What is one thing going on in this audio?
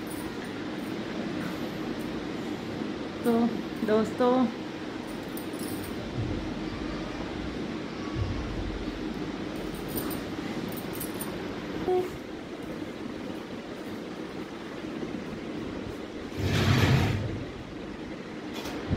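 A ceiling fan whirs steadily overhead.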